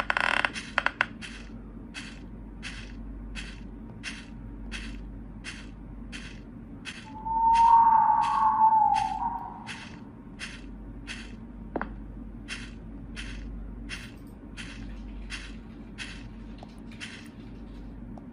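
Footsteps thud steadily across soft ground.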